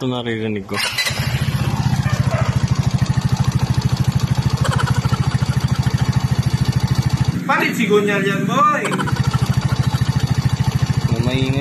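A scooter engine idles with a fast, loud rattling knock.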